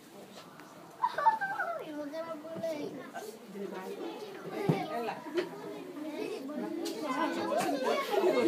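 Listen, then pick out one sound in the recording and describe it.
Young children chatter and talk nearby in a room.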